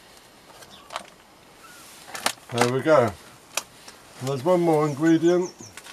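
A plastic tray scrapes and knocks as it is lifted and set down.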